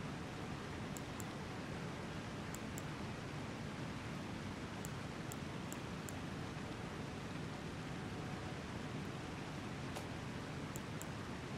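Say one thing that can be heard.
Short, high menu clicks tick now and then.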